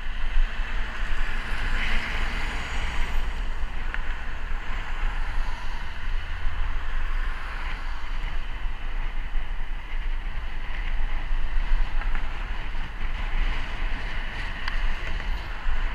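Wind rumbles loudly against the microphone while riding.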